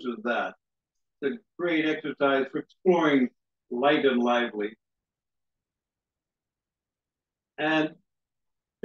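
A man speaks calmly and clearly through a microphone.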